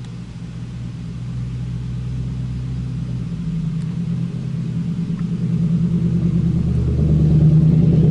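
A second van engine drones loudly as it approaches and passes close by.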